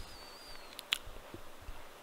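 A man speaks quietly through a headset microphone.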